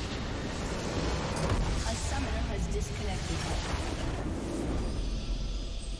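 A large crystal explodes with a deep boom.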